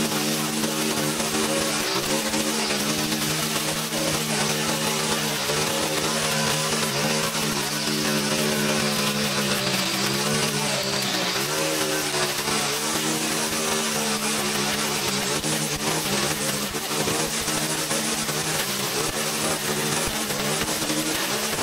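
A string trimmer engine whines steadily, rising and dipping as it cuts.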